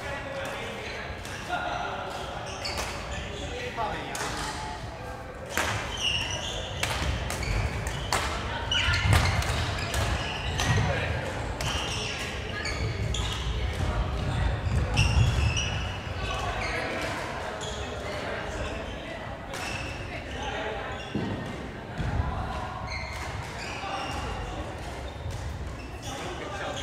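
Shoes squeak on a wooden floor.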